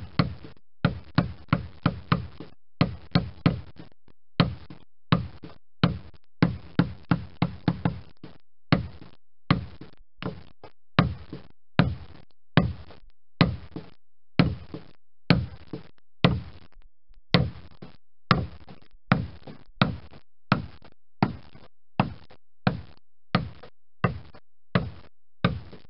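A mallet strikes a chisel on wood in quick, steady blows.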